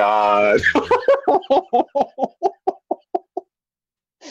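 A man laughs loudly in bursts through a close microphone.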